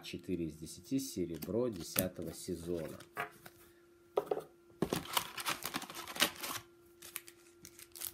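Trading cards flick and riffle in quick succession.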